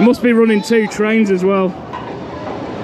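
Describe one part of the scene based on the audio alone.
Riders on a roller coaster scream loudly close by.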